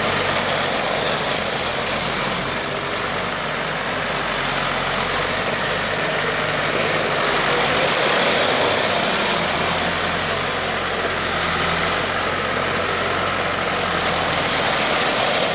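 A small diesel engine chugs steadily nearby.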